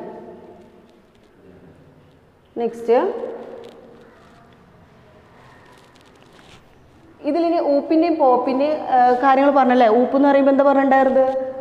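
A young woman speaks clearly and calmly, close by, explaining.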